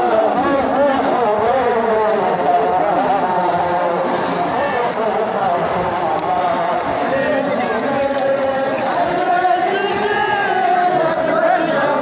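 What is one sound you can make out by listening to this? Many hands beat on chests in rhythm.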